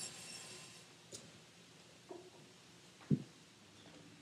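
A metal chair scrapes and clanks as it is moved.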